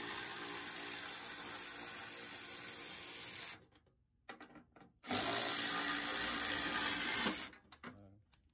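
A pneumatic ratchet whirs loudly in short bursts.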